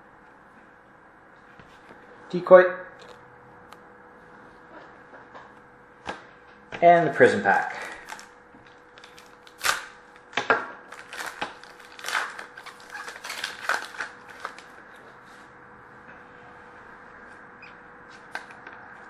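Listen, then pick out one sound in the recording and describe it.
Hands handle cards and small plastic cases with soft clicks and rustles.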